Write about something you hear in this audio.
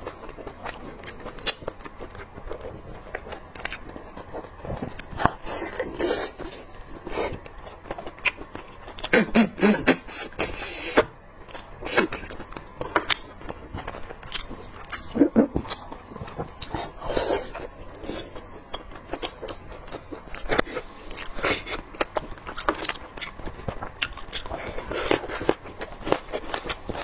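A young woman chews and slurps food close to a microphone.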